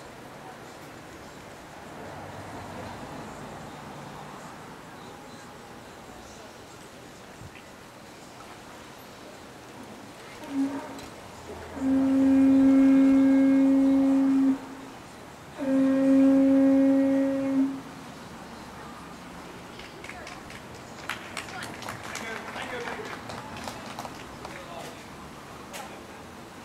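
Wind rustles through palm fronds.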